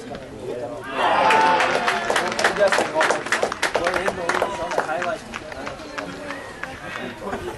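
A small crowd cheers and shouts loudly, then dies down.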